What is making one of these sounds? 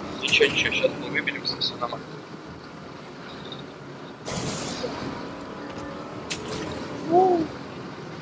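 A vehicle engine hums steadily as a car drives.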